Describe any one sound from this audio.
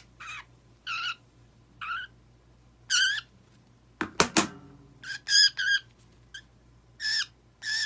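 A small parrot squawks in short, shrill chirps again and again.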